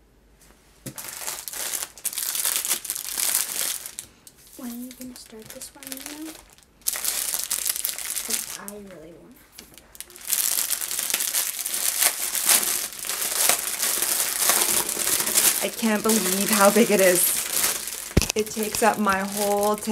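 Hands crinkle plastic bags.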